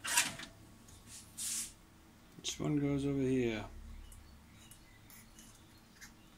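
Fingers brush and tug at loose wires.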